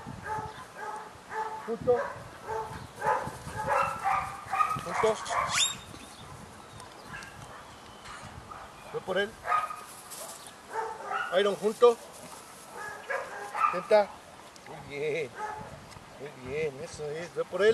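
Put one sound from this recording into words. A man gives commands to a dog in a firm voice, close by.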